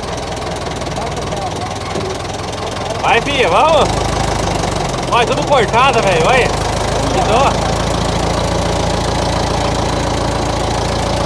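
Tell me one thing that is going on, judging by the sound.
A vehicle engine idles with a low, steady rumble.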